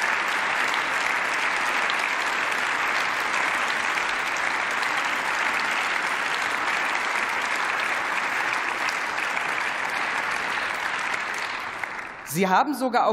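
A large crowd applauds steadily in a big hall.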